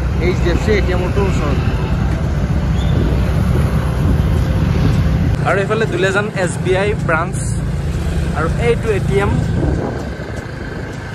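Motorcycle engines rumble as they ride past on a road.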